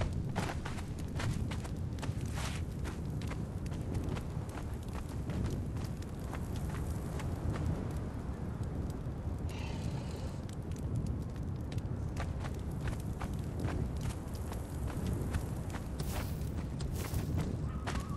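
Footsteps crunch on sand at a steady pace.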